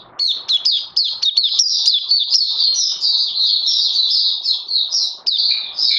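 A small bird sings a fast, high, twittering song close by.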